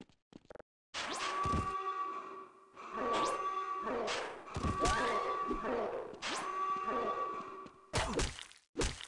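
An axe hacks into flesh with heavy thuds.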